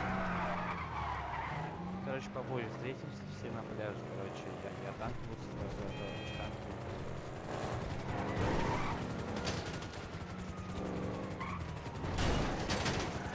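A car engine roars as the car speeds along a road.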